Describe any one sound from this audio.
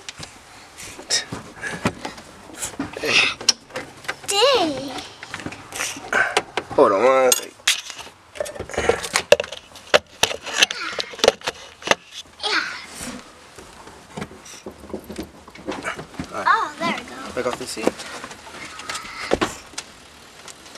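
A young boy talks and squeals excitedly close by.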